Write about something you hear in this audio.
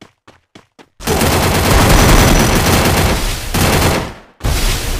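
Shotgun blasts ring out in quick bursts.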